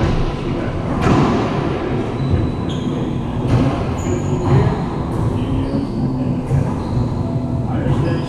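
A rubber ball smacks hard against the walls of a large echoing court.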